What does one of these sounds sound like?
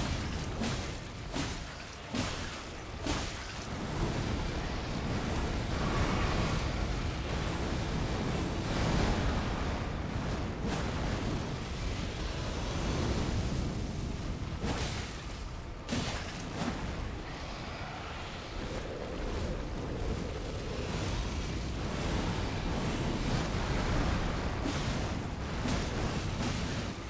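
Heavy blows, crashes and booming impacts of a fierce fight ring out.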